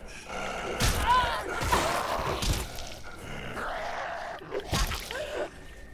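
A melee weapon thuds heavily into a body.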